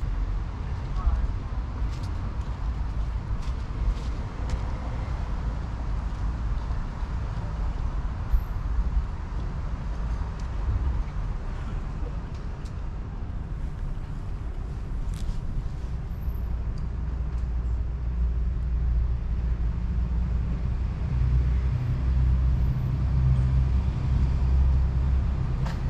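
Wind rumbles steadily against the microphone outdoors, growing stronger toward the end.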